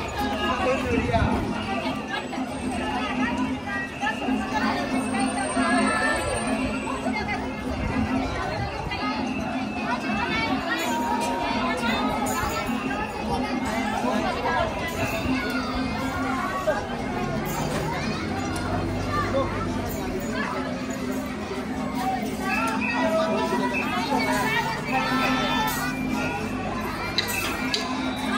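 A crowd of adults and children chatters all around outdoors.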